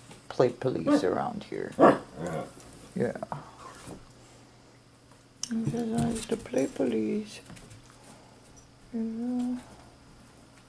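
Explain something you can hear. Dogs growl and yelp playfully at close range.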